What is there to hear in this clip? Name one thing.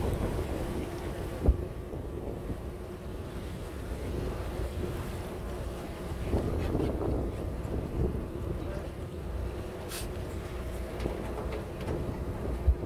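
Wind rumbles steadily across open water.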